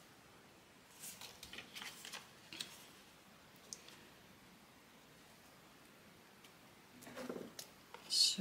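Paper rustles and slides as hands handle a card.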